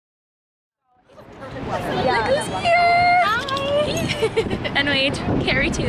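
Young women talk excitedly close by.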